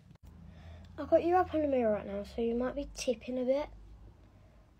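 A young girl speaks close by, calmly.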